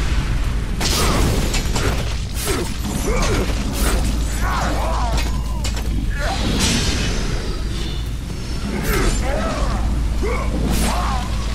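Blades slash and strike with sharp, rapid impacts.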